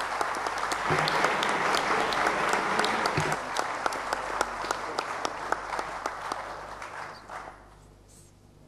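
A crowd applauds in a large room, the clapping fading away.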